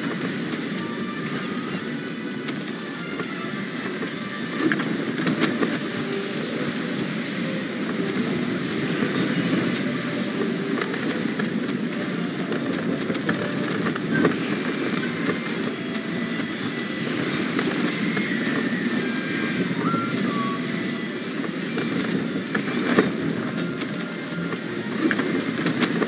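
Wind rushes steadily past a flying sailing ship.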